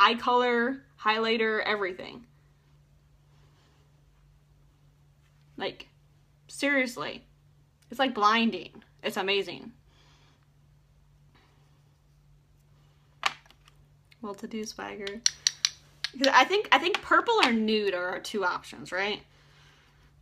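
A young woman talks calmly and close by, in short bursts.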